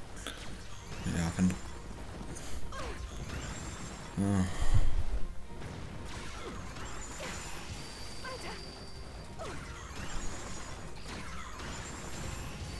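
Magic blasts burst and whoosh during a fight.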